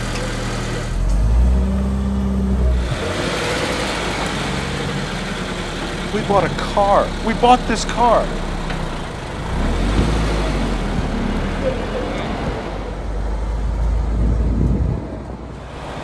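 A car engine revs up loudly several times.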